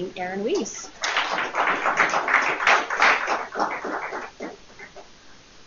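A woman speaks into a microphone to an audience.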